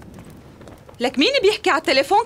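A woman speaks nearby.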